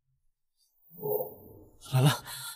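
A young woman gasps in fear.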